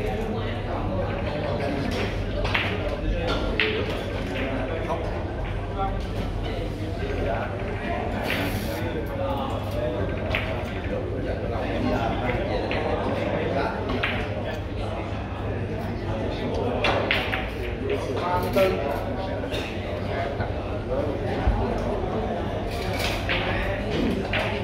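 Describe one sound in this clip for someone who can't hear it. Voices of people murmur in an indoor hall.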